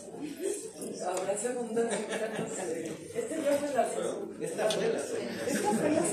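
Men laugh loudly.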